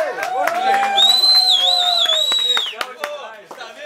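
A man whistles loudly through his fingers.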